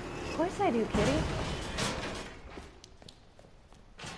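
A metal gate rattles open.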